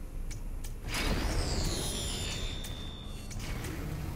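An energy field crackles and hisses loudly.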